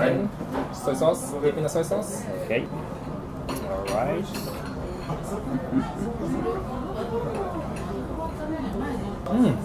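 Two men talk and laugh together nearby.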